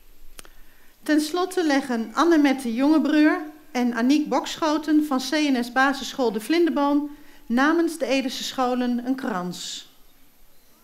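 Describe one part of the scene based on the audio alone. A middle-aged woman speaks calmly through a microphone and loudspeakers, outdoors.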